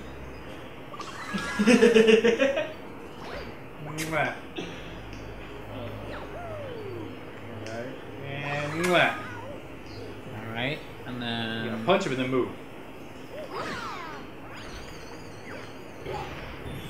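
Cartoonish game sound effects boing and chime.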